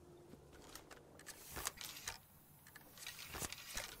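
A gun's metal parts click and clatter.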